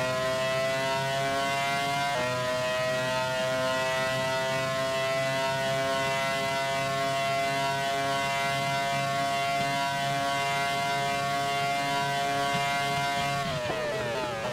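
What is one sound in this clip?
A racing car engine whines steadily at high revs.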